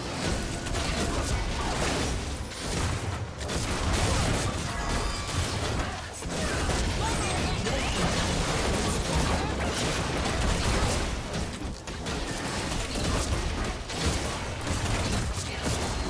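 Game combat sounds of spells, hits and explosions crackle and boom continuously.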